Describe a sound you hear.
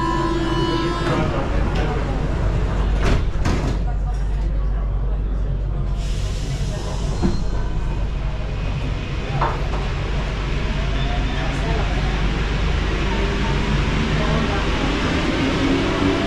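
A metro train rumbles and rattles along the tracks.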